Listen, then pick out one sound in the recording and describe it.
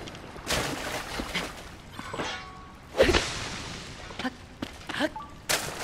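Soft magical whooshes and shimmering chimes sound in bursts.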